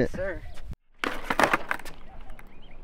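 Skateboard wheels roll and clatter on concrete.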